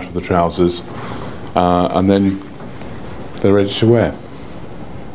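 A middle-aged man speaks calmly and clearly into a small microphone close by.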